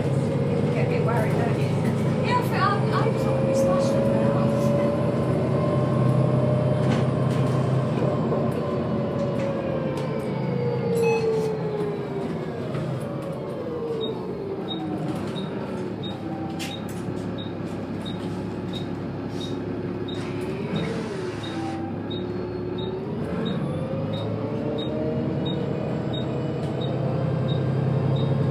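A bus engine hums and whines, rising and falling in pitch as the bus speeds up and slows down.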